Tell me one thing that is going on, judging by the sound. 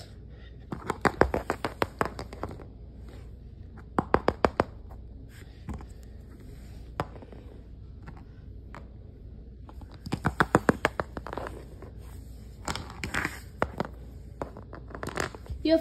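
Small plastic toys tap and clack against a hard floor in quick bursts.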